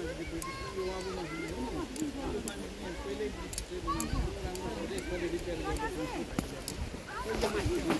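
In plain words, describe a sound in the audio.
Several men and women talk and call out excitedly nearby, outdoors.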